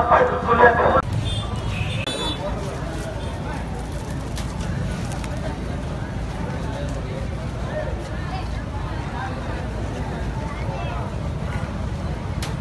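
A crowd of men murmurs and chatters outdoors.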